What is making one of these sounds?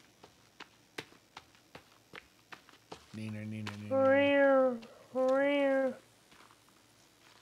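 Footsteps swish through thick grass and undergrowth.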